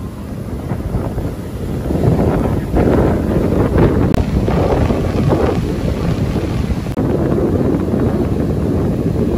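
Waves crash and roar loudly onto the shore.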